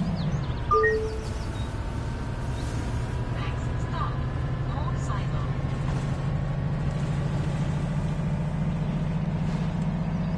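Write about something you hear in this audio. A bus engine hums with a low, steady drone.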